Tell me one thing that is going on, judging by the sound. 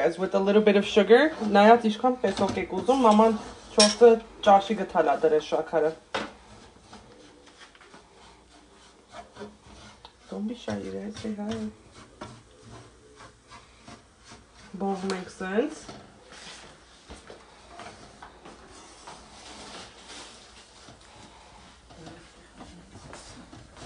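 A wooden spatula scrapes and stirs food in a frying pan.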